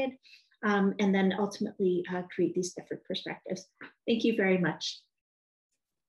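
A young woman speaks calmly through a microphone in an online call.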